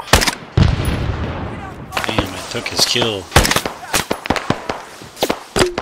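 Rifle shots crack sharply and echo across open ground.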